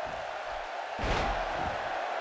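A heavy body slams onto a wrestling ring mat with a thud.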